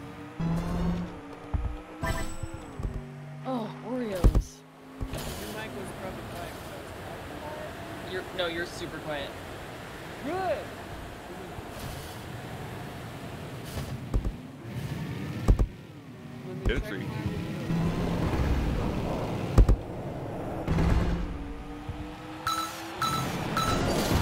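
Video game sound effects bleep and chime.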